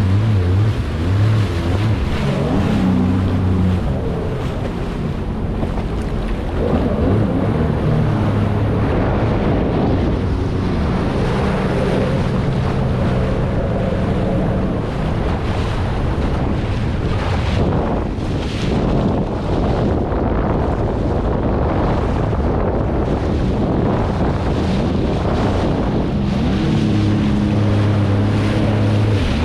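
Jet ski engines drone and rev nearby.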